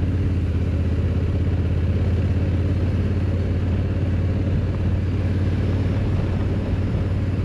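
Tyres roll over a rough road.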